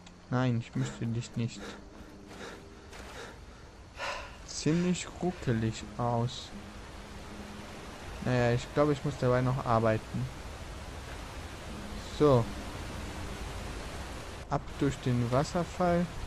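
Water splashes as a swimmer paddles through it.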